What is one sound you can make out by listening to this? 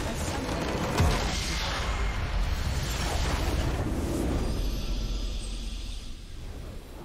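A game's nexus explodes with a loud crackling blast.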